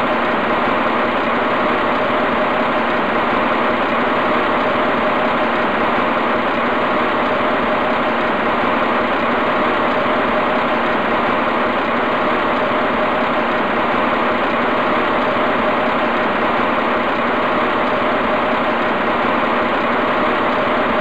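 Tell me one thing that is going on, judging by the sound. An electric locomotive hums steadily while standing still.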